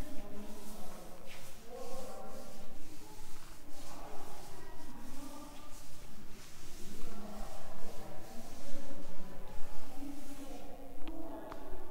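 A cloth duster rubs and swishes across a chalkboard.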